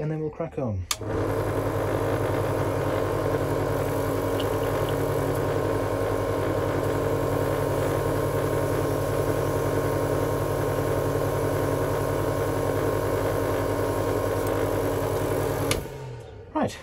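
A spray booth's extractor fan hums steadily, then stops.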